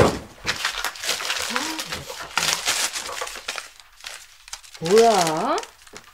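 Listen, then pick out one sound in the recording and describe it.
Papers rustle as they are handled.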